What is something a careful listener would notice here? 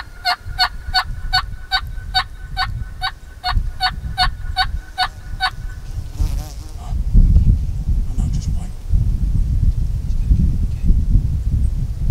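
Wind rumbles outdoors through the grass.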